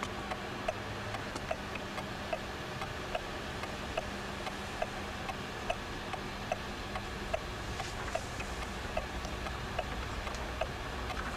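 A clock ticks steadily.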